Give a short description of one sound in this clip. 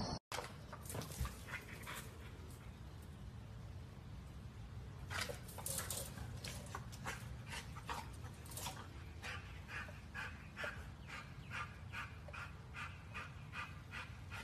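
A dog tugs and thrashes on a rope with repeated creaks and thumps.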